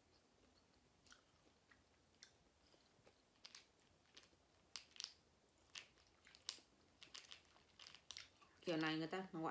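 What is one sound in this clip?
Small candies rustle and click in a plastic container.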